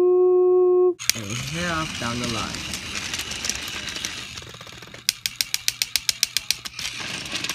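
A toy train rolls along a plastic track with a rattling hum.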